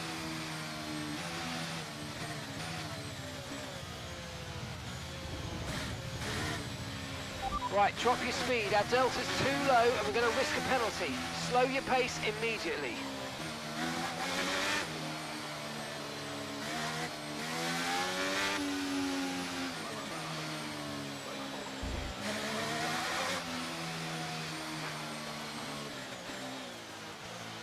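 A racing car engine drones steadily, rising and falling in pitch as the car speeds up and slows.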